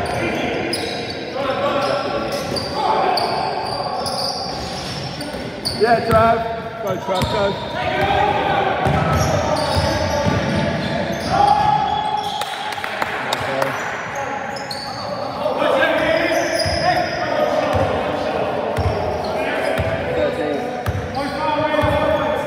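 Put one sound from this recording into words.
Young men shout to each other across the hall.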